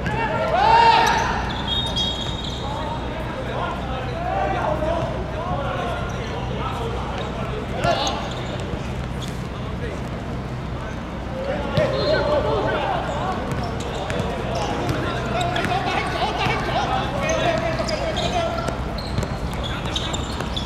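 Sneakers scuff and patter on a hard court.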